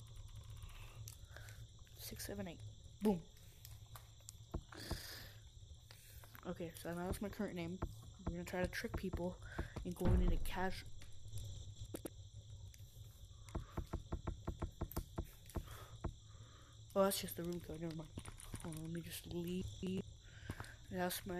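Keys click as buttons are pressed.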